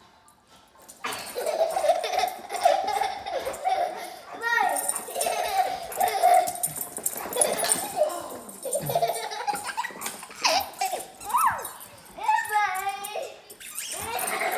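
A young boy laughs and shrieks excitedly.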